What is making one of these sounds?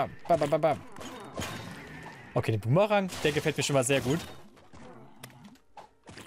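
Short video game hits and blasts ring out.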